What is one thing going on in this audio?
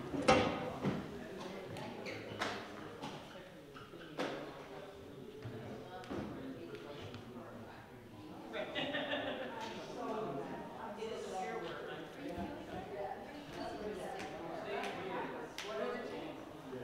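Adult men and women chat in a large echoing hall.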